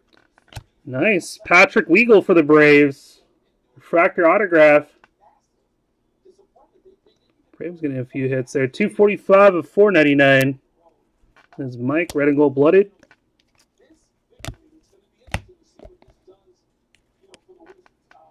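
Trading cards rustle and click softly as they are shuffled by hand.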